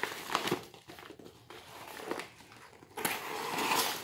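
A blade scrapes and cuts through tape.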